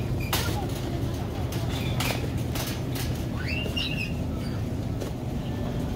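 A shopping cart rattles as it rolls along a hard floor.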